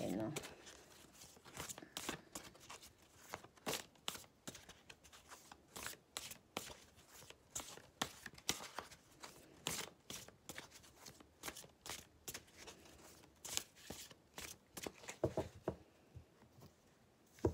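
Playing cards shuffle with quick, crisp riffling clicks close by.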